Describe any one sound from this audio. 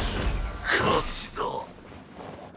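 Magical bursts crackle and ring out.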